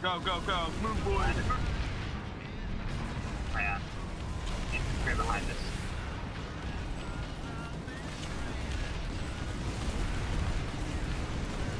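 Cannon shots boom.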